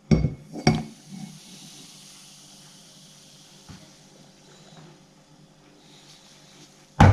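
Milk pours into a glass.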